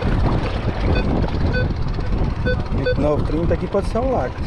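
A metal detector beeps in short, repeated high tones.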